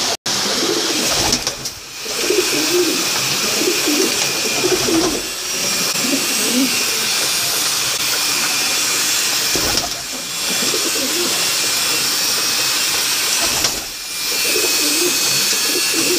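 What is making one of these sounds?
Pigeons coo in low, throaty warbles close by.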